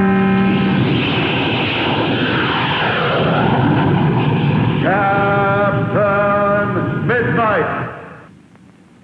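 A jet plane roars past.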